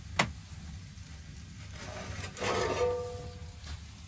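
A metal pan scrapes and rings on a stove top.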